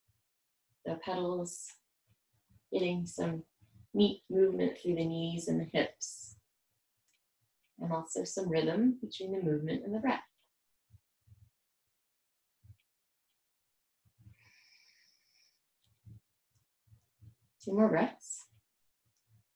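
A woman speaks calmly, giving instructions close by.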